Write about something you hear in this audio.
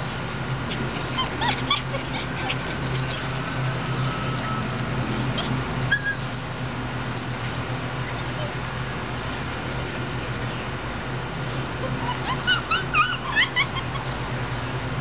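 Puppies whimper and yelp in short high squeaks.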